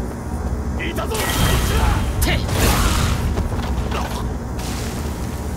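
Sharp slashing whooshes and impacts burst out during a fight.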